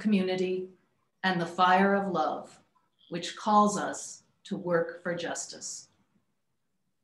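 A woman speaks calmly through a microphone, as if on an online call.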